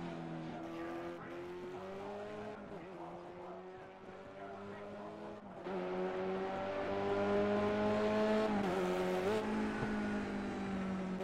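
Racing car engines drone loudly and rise in pitch as they accelerate.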